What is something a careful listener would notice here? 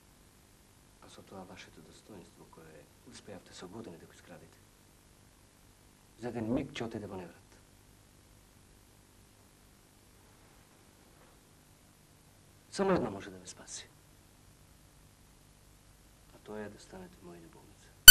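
A man speaks in short, stern bursts with pauses between them.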